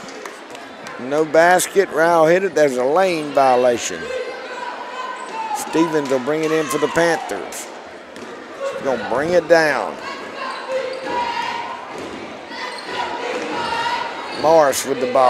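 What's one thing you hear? A crowd chants and cheers loudly.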